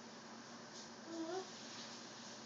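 A toddler babbles briefly nearby.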